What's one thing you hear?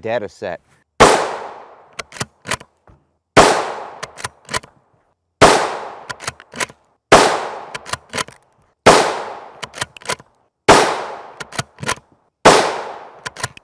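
A rifle fires loud single shots at a steady pace, each echoing outdoors.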